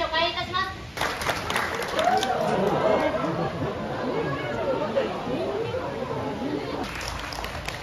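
A crowd of children chatters and exclaims.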